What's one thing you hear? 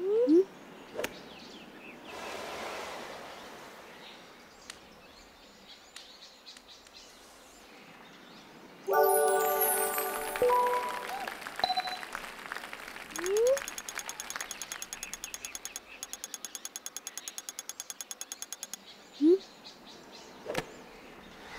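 A golf club strikes a ball with a sharp thwack.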